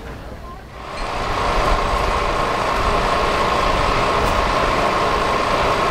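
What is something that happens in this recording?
A heavy lorry engine rumbles as the lorry drives slowly along a road.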